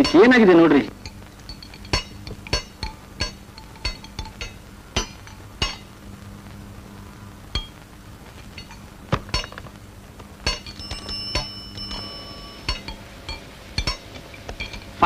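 Metal tools clink and tap on a scooter.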